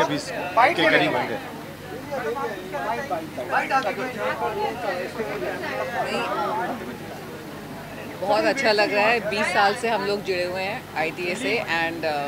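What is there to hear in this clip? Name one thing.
A middle-aged woman speaks warmly, close by.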